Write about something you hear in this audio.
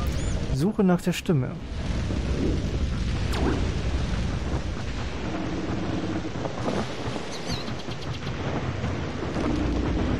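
Rain pours steadily.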